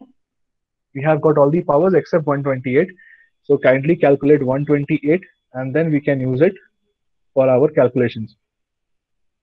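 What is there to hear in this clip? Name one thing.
A young man speaks calmly through a microphone, as if explaining, heard over an online call.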